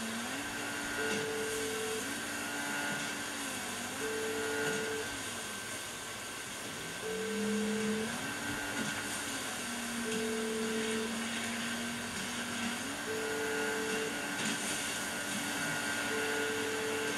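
A phone ring tone beeps at a steady, repeating pace.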